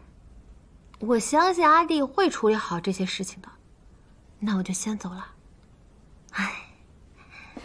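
A young woman speaks earnestly nearby.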